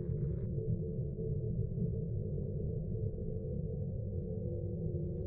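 A starship's engines hum with a deep, steady rumble.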